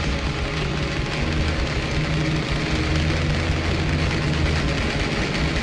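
An acoustic guitar plays chords through distorting effects, sounding fuzzy and dense.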